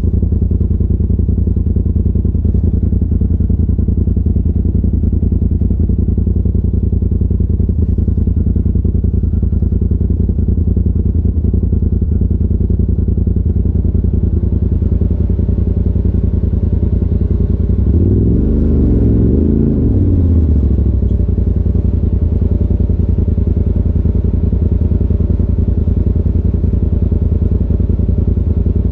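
A side-by-side UTV engine runs low as the vehicle crawls over rocks.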